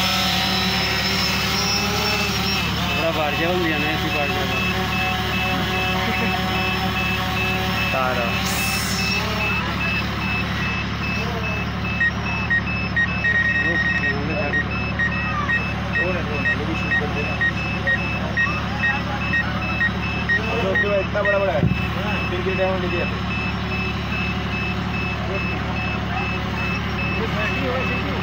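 A drone buzzes steadily overhead.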